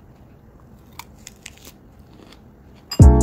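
A young woman crunches and chews salad up close.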